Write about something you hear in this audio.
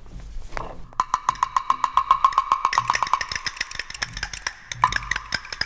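An orchestra plays briskly in a large echoing hall.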